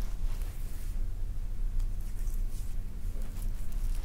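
Fingers brush and scratch the fuzzy cover of a microphone.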